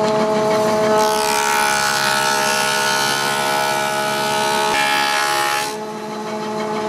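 A wood planer cuts a board with a loud, high whine.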